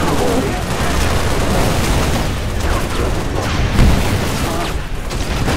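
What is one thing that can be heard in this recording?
Video game gunfire bursts loudly.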